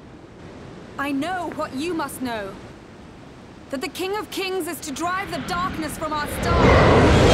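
A young woman speaks calmly and firmly.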